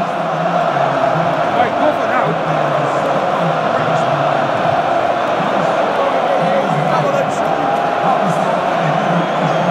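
A huge crowd roars and cheers in a large echoing arena.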